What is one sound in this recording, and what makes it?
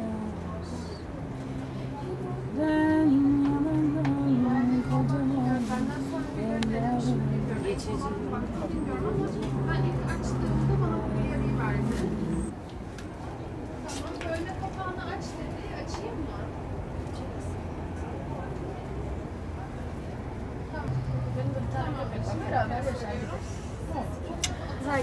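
A woman wails and sobs close by.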